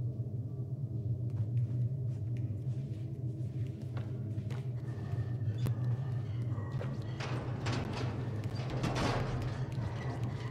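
Small footsteps patter softly across a hard floor.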